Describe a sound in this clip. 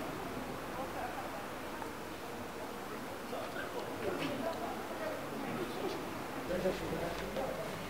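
A man talks calmly nearby, outdoors.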